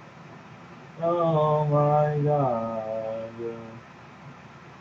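A man sings out a long, wavering tune.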